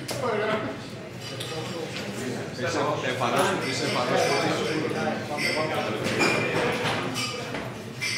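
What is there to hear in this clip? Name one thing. Adult men talk and chatter with animation nearby.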